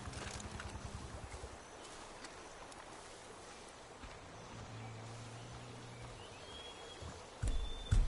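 Footsteps crunch on dry ground and grass.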